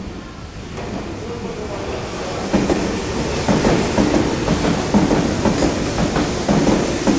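A train rumbles and clatters loudly past close by.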